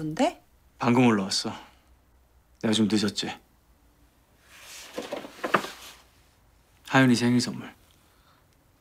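A young man speaks calmly and warmly, close by.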